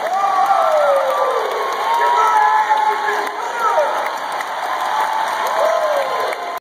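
A large crowd murmurs in a big echoing arena.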